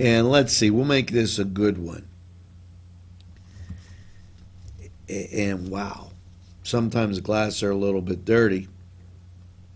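A middle-aged man reads out calmly and close to a microphone, with pauses.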